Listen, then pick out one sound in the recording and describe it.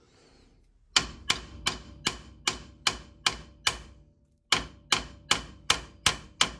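A hammer strikes a metal punch in quick, ringing blows.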